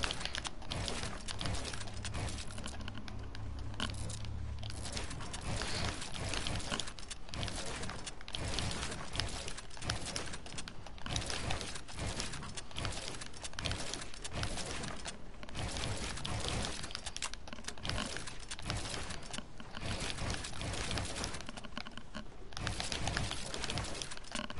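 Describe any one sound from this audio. Building pieces clack into place in a video game.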